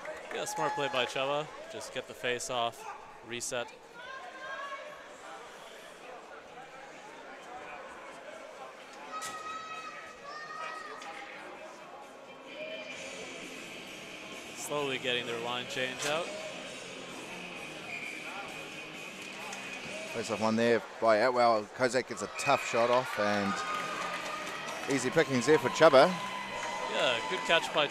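Nearby spectators shout and cheer loudly in an echoing rink.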